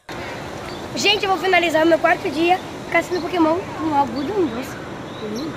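A young girl talks with animation close by, outdoors.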